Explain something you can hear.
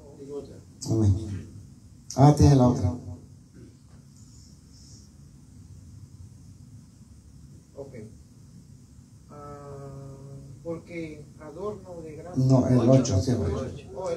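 A man sings into a microphone through a loudspeaker, in bursts with pauses.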